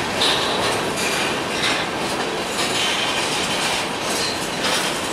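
Freight cars rumble and clatter past on the rails close by.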